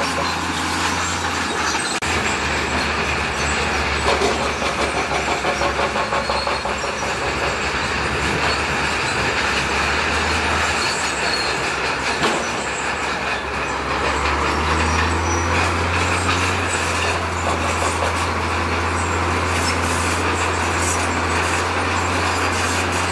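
Trucks drive past on a road.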